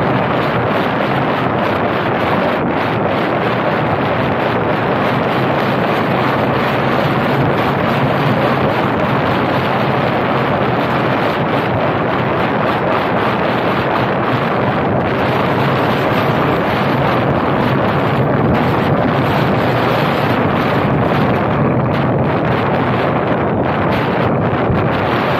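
Wind buffets a microphone on a moving car.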